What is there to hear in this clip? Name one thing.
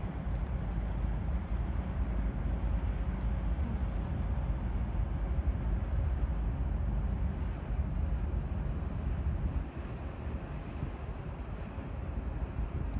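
Wind rumbles low and steady outdoors, easing near the end.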